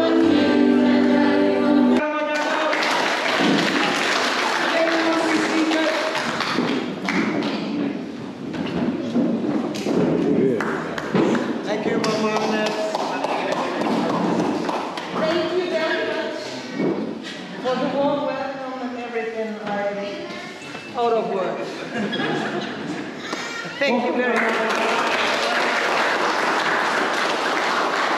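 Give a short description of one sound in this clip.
A crowd of men and women chatter and cheer loudly in an echoing hall.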